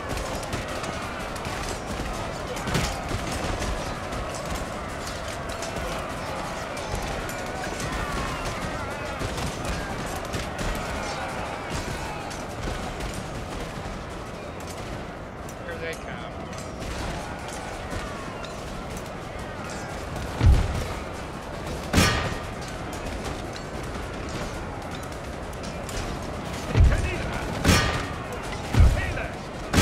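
A battle rages with a steady, noisy clamour of clashing weapons.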